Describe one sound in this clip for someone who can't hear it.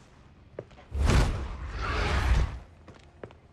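Heavy blows land with deep booming thuds.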